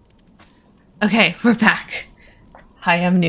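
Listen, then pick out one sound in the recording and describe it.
A young woman laughs loudly, close to a microphone.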